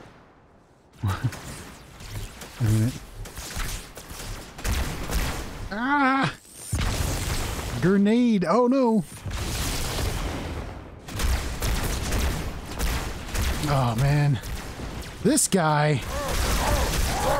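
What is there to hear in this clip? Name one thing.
A weapon fires rapid energy shots.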